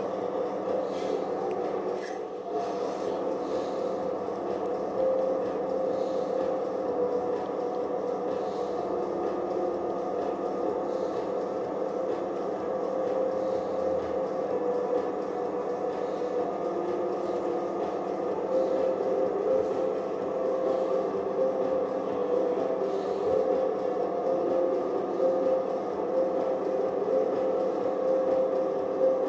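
A tractor engine drones steadily through a television speaker.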